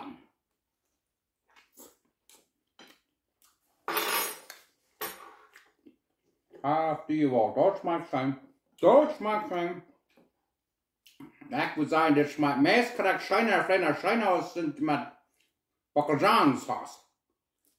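A middle-aged man chews food loudly.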